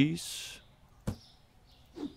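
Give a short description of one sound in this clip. A cardboard box closes with a dull thud.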